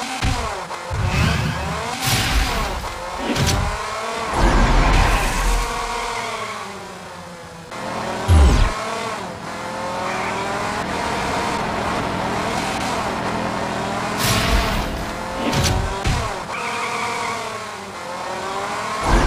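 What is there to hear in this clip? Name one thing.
A racing car engine whines and revs up and down.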